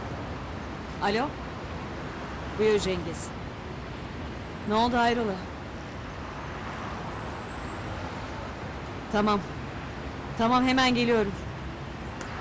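A young woman speaks into a phone in short phrases.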